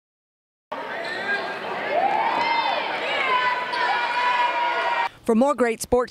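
A crowd of girls cheers and shouts.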